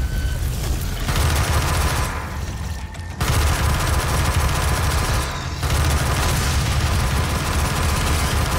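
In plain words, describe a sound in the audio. A rapid-fire energy gun shoots in fast, crackling bursts.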